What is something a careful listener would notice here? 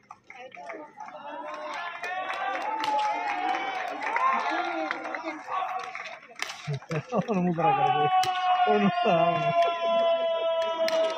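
A crowd of spectators cheers and shouts outdoors, growing louder.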